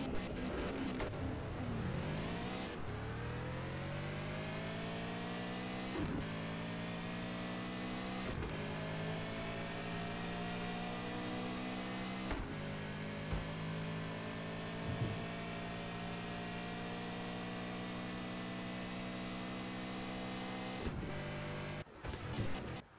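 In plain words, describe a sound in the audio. A racing car engine roars and climbs through the gears, rising in pitch with each shift.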